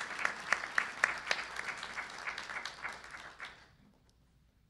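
An audience applauds in a large room, then the clapping fades away.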